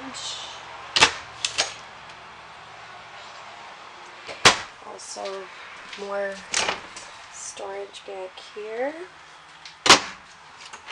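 A wooden cupboard door clicks and knocks as it opens and shuts.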